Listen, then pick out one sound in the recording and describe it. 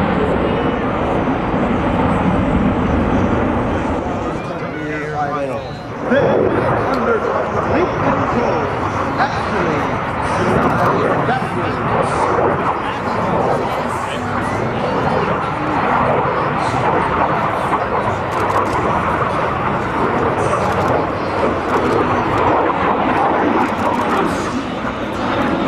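A jet aircraft roars loudly overhead, its engine noise rumbling and whooshing.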